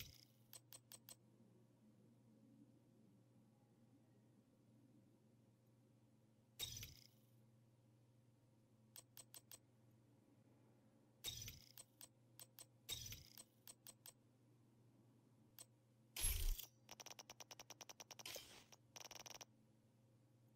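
Short electronic clicks tick in quick runs.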